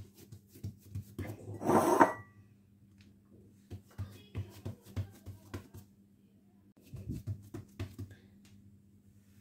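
Fingertips press and pat soft dough with soft dull thumps.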